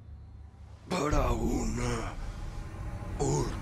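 A man speaks in a strained, pained voice close by.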